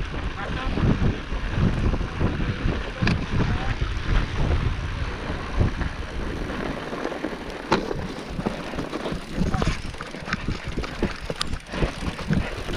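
Bicycle tyres crunch over snow.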